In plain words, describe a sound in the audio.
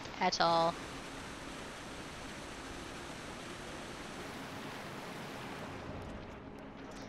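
A waterfall pours and splashes steadily.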